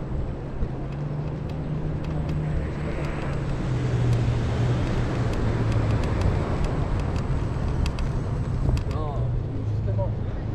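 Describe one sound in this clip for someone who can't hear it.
Running footsteps slap steadily on pavement.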